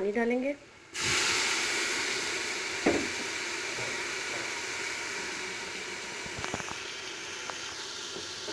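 Hot liquid hisses and bubbles steadily in a pot.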